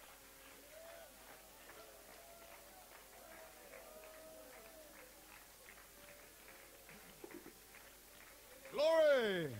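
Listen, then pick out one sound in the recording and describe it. A crowd of people faintly sings and calls out.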